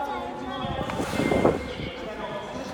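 A killer whale splashes its tail in the water.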